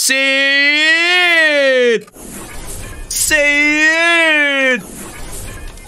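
A man sings long, wavering notes close to a microphone.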